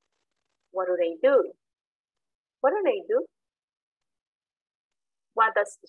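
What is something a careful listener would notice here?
A young woman speaks clearly and slowly over an online call, pausing between phrases.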